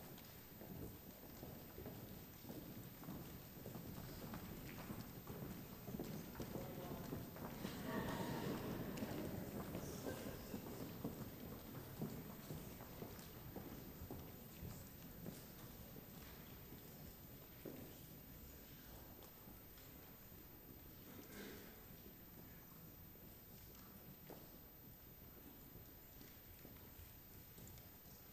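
A large audience murmurs and chatters in an echoing hall.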